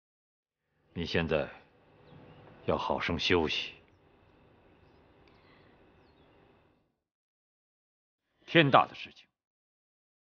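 A middle-aged man speaks slowly and calmly, close by.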